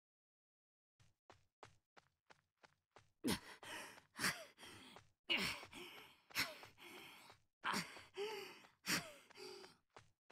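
Footsteps run over forest ground, growing louder and faster.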